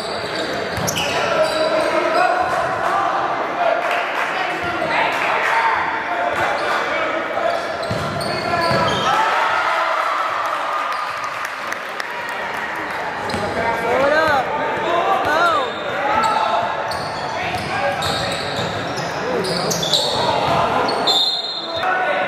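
Spectators and players shout and cheer throughout in a large, echoing gym.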